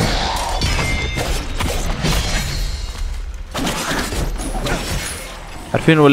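A sword swishes and clashes in quick fighting strikes.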